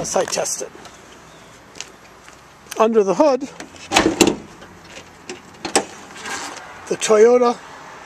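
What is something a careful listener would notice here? A car hood latch clunks open.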